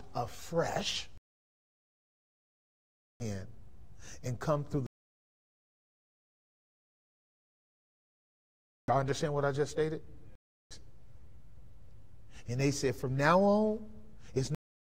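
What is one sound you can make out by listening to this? A man speaks with animation through a microphone, pausing between phrases.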